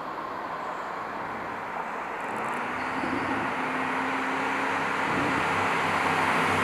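A car approaches along a road, its engine growing louder.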